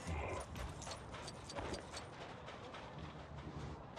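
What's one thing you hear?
Quick footsteps patter on sand.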